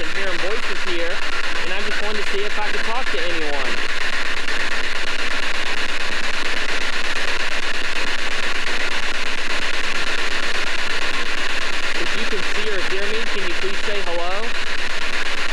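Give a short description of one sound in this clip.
Warbling, wavering tones come from a small radio through the static.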